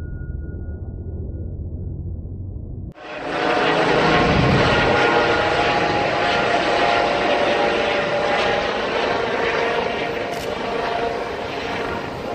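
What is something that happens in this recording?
A helicopter flies overhead with a loud, steady whirring drone.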